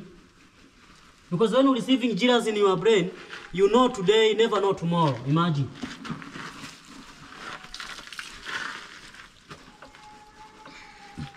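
Water splashes in a bucket as clothes are washed by hand.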